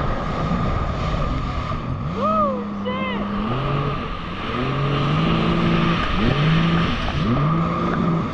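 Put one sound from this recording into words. Water sprays and splashes against the hull.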